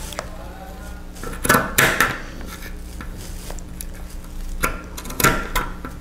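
Scissors snip through fabric and paper.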